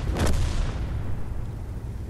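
A heavy shell explodes with a loud boom.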